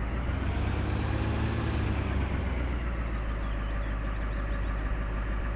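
A van engine rumbles steadily as the van drives.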